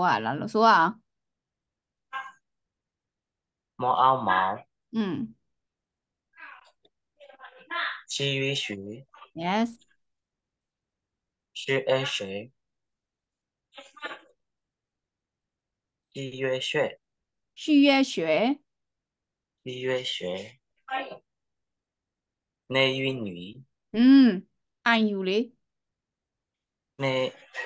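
A young woman speaks clearly and slowly over an online call, sounding out syllables.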